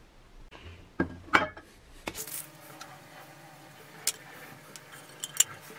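Plastic parts clatter and click as they are handled and set down.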